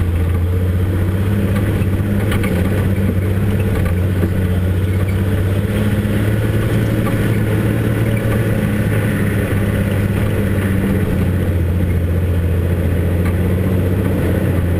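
A vehicle's engine hums steadily at low speed.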